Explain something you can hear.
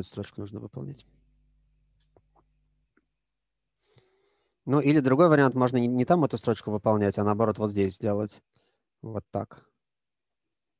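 A man speaks calmly through a microphone, as on an online call.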